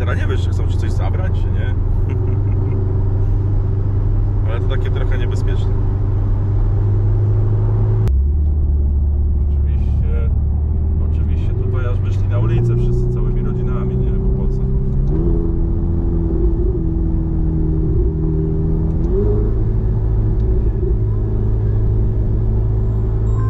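A car engine hums steadily and its pitch steps up and down as it changes gear.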